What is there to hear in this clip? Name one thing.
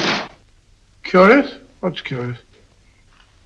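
An elderly man speaks in a surprised tone.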